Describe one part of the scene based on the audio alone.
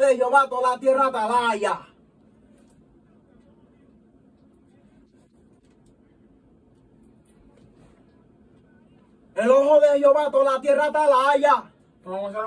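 A man sings into a close microphone.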